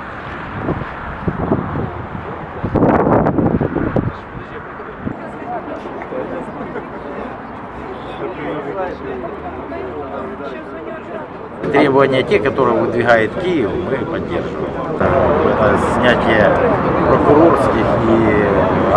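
A crowd of people murmur and talk outdoors.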